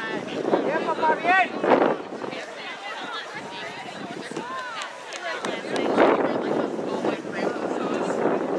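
Spectators on the sideline shout and cheer outdoors.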